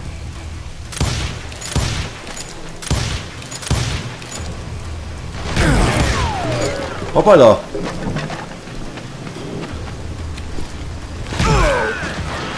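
Revolvers fire loud gunshots in quick bursts.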